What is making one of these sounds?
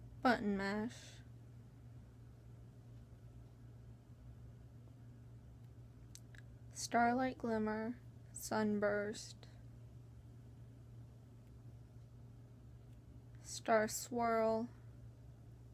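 A young woman speaks briefly and calmly, close by, in short bursts with long pauses.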